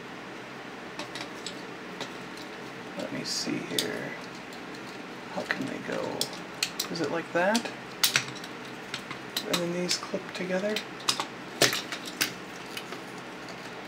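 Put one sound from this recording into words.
Plastic toy parts click and snap as they are twisted and folded.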